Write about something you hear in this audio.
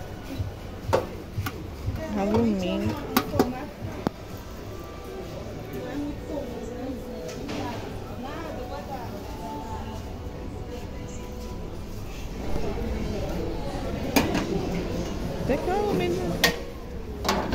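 Metal baking trays clatter as a hand lifts and shifts them.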